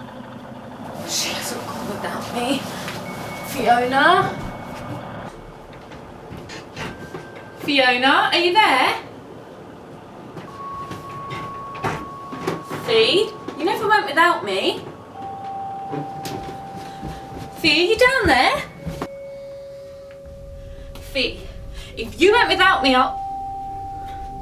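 A young woman sings close by.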